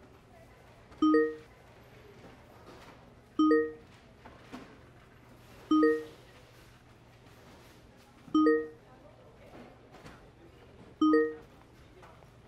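A phone chimes with short message alert tones.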